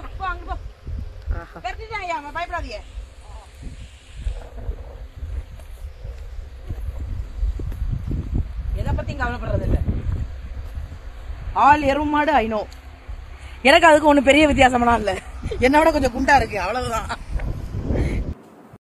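A woman talks with animation close to the microphone.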